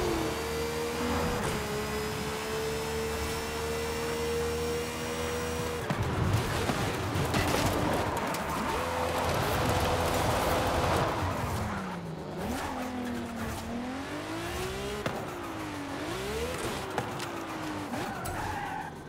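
A powerful car engine roars at high speed, its pitch rising and falling as it shifts gears.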